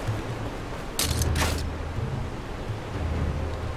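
A grappling rope swishes through the air.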